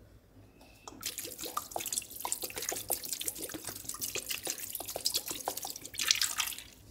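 Liquid pours and splatters onto meat.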